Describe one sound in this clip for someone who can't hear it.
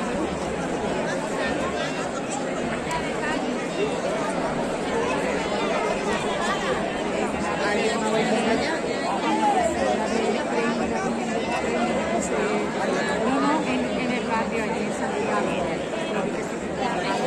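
A large crowd of men and women murmurs and chatters all around, close by, outdoors.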